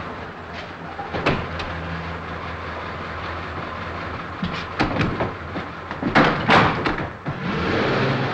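A car engine idles and pulls away.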